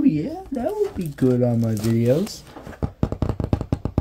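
A stiff sheet of card rustles as it is handled.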